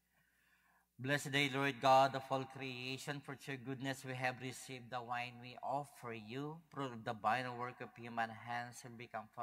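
A man speaks steadily through a microphone in a large echoing hall.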